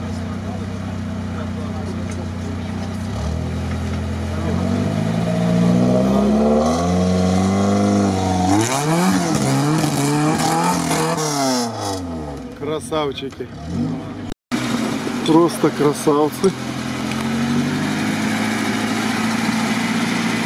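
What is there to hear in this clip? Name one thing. An engine revs hard, rising and falling in pitch.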